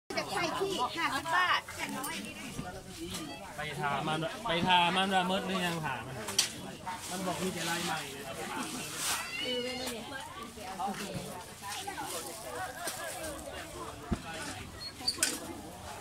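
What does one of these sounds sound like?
A crowd of people chatters around outdoors.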